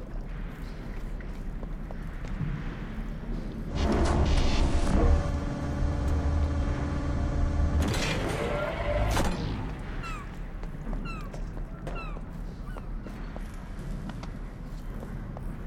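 Footsteps crunch over rubble and debris.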